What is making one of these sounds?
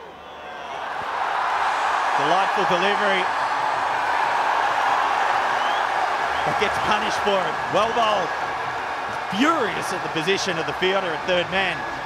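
A large crowd roars and cheers in a stadium.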